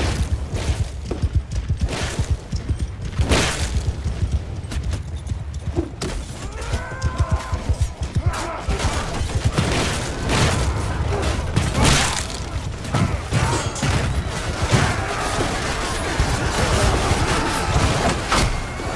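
Cannon fire booms and explosions blast repeatedly.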